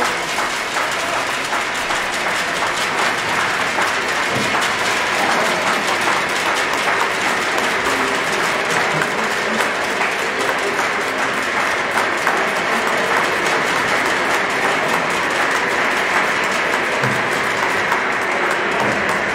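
An orchestra plays loudly and steadily in a large echoing hall.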